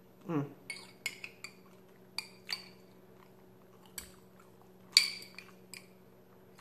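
A spoon scrapes and clicks against a glass jar.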